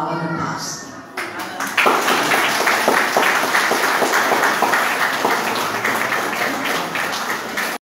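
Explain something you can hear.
A crowd of adults and children chatters and laughs.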